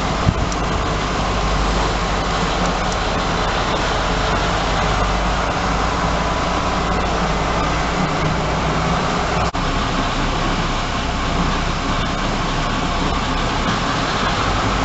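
A diesel train engine idles with a steady low rumble.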